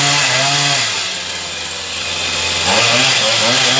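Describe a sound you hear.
A chainsaw drops to a low idle for a moment.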